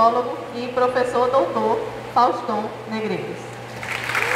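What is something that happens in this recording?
A young woman speaks into a microphone.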